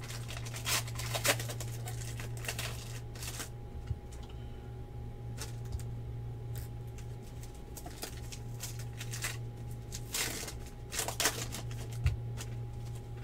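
Cards slap and tap as they are handled.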